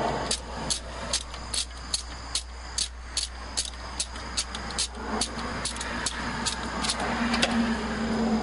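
A ratchet wrench clicks in quick, even strokes.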